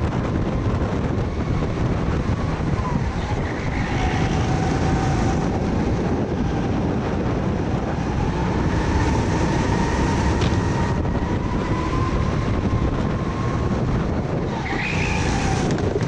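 Another kart engine whines nearby, rising and falling in pitch.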